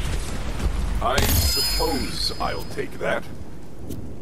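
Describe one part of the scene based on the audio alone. A chest bursts open with bright chiming, sparkling effects.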